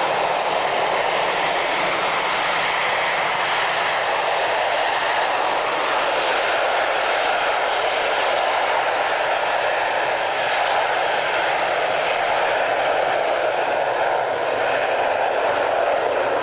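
A four-engine jet airliner taxies past with a steady engine roar.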